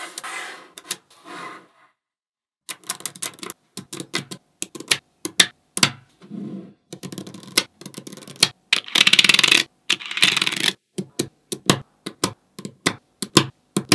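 Small metal magnetic balls click and snap together.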